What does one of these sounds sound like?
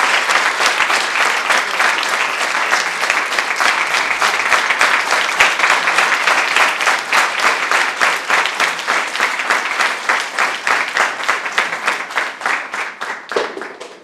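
An audience applauds in a room, the clapping slowly dying away.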